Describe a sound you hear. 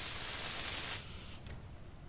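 A welding torch hisses and crackles with sparks.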